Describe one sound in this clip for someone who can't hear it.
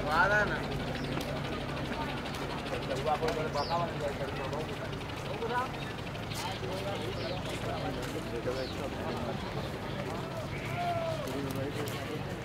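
Men talk casually nearby, outdoors.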